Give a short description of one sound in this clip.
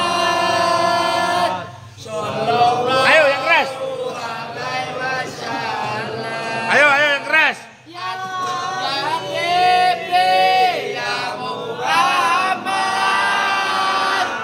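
A man shouts loudly close by.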